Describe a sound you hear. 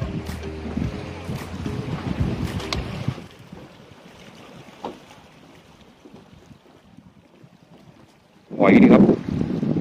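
Water laps and splashes against rocks.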